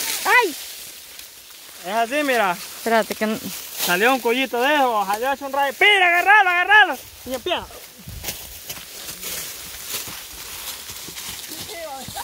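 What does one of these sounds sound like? Dry stalks rustle as they are pushed aside.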